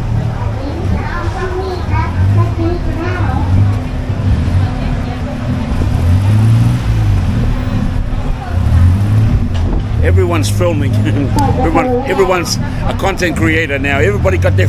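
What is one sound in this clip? A crowd murmurs outdoors on a busy street.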